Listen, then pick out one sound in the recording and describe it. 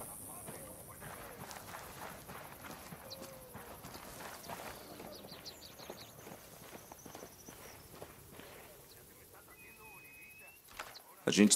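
Footsteps crunch on rocky dirt.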